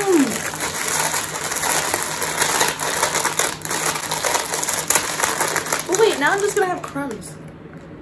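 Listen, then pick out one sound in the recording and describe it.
A plastic snack packet crinkles in someone's hands.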